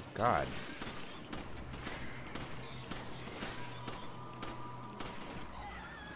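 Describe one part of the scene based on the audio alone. A pistol fires several shots.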